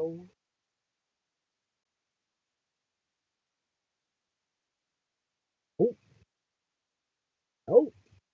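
A woman speaks in short, thoughtful bursts close to the microphone, with long pauses between.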